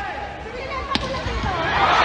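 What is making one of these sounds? A volleyball is struck with a sharp smack.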